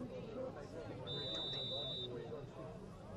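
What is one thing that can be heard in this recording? A referee's whistle blows briefly from across an outdoor field.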